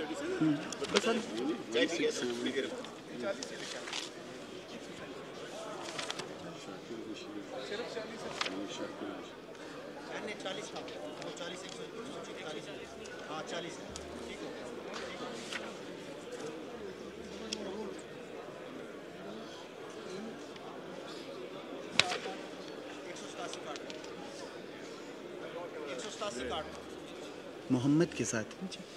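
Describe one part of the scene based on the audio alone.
A crowd of men murmurs and chatters in a large echoing hall.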